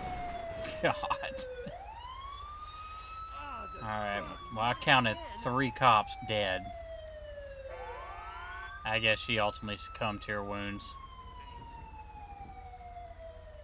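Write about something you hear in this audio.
A siren wails, rising and falling slowly.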